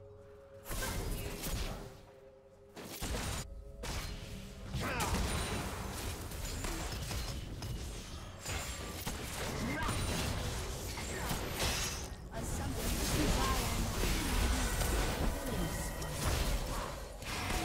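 Game spell effects and weapon hits crackle and clash.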